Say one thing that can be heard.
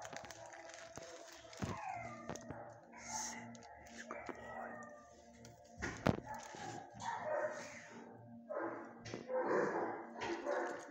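A dog sniffs and snuffles up close.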